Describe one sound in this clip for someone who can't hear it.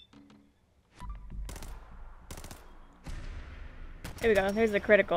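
A gun fires several loud shots in quick succession.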